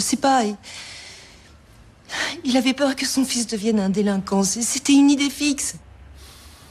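A woman speaks with feeling, close by.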